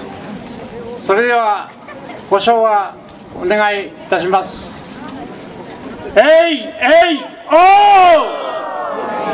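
A group of men shout a war cry in unison outdoors.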